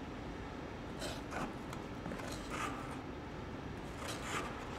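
Ice skates scrape across ice far off in a large echoing hall.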